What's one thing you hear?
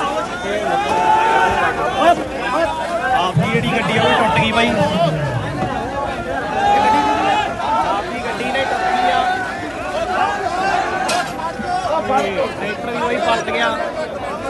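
A crowd of men talk loudly and excitedly nearby.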